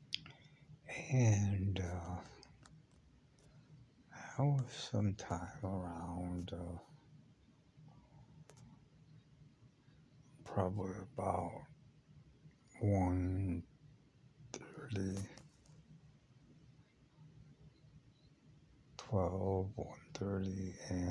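An elderly man speaks slowly and hoarsely, close up, in short bursts.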